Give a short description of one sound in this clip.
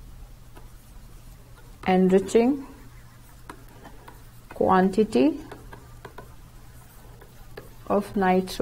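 A pen scratches softly as it writes.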